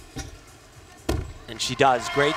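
A gymnast lands on a mat with a dull thud.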